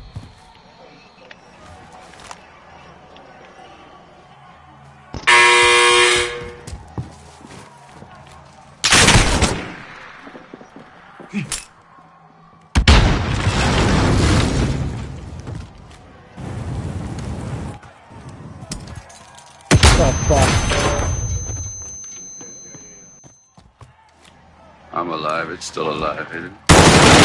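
Gunshots ring out loudly in a video game.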